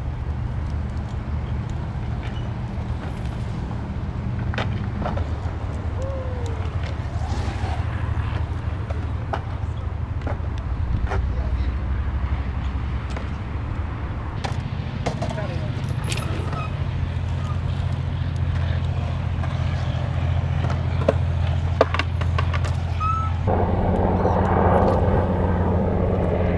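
BMX tyres roll and whir over concrete.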